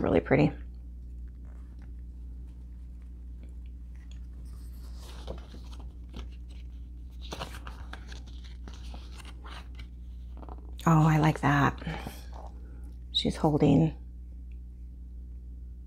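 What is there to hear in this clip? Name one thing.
Paper pages rustle as a booklet is handled.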